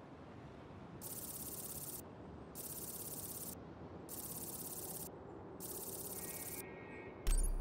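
A game menu ticks rapidly in short bursts as a money counter counts up.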